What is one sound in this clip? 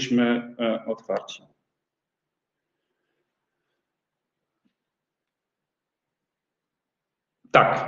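A man speaks calmly over an online call, pausing between phrases.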